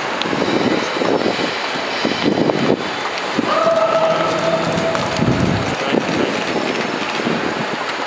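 A luggage trolley rolls along on its wheels.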